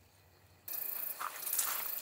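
Tongs click against a metal grill.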